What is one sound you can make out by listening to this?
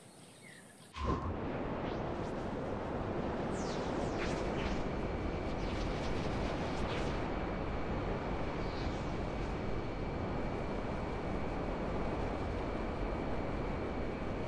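A spaceship roars steadily with a loud whooshing rush.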